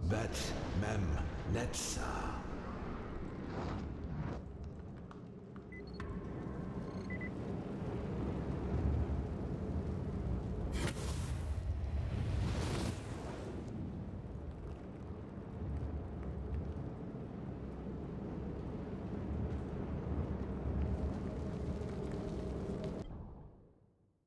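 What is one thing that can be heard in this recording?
A glowing portal hums with a deep, steady rumble.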